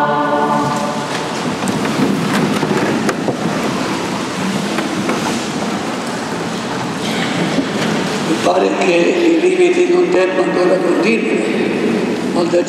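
An elderly man speaks calmly through a microphone in a large echoing room.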